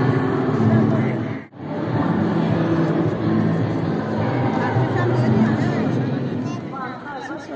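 A crowd murmurs and chatters in a busy indoor hall.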